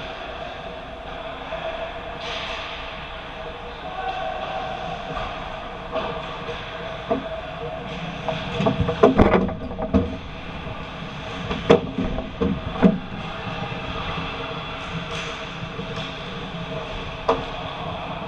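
Skate blades scrape and hiss across the ice, echoing in a large hall.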